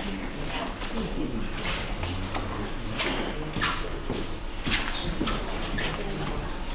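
A woman's heels click on a hard floor as she walks.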